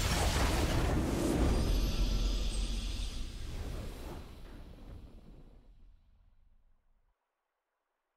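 A triumphant video game fanfare booms and slowly fades away.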